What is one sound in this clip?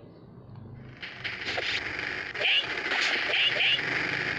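Blows land in a quick fight, with thuds and swishes.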